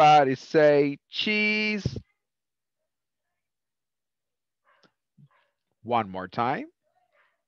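An adult speaks over an online call, in short phrases with pauses.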